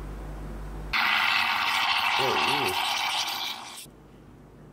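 A stovetop coffee pot hisses and gurgles as it boils.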